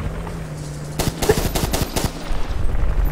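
A submachine gun fires a rapid burst of shots.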